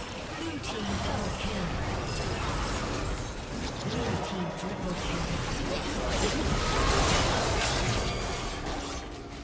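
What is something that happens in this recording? Game spell effects crackle and clash during a fight.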